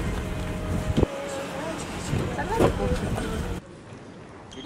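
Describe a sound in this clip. Young men chat casually outdoors amid background noise.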